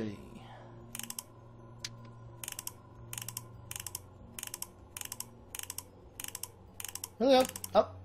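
A clock's hands click as they are turned.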